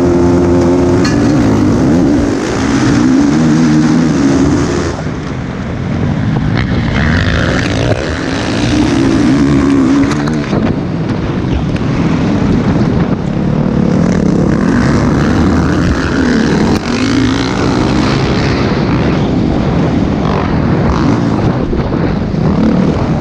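A dirt bike engine roars loudly close by, revving up and down again and again.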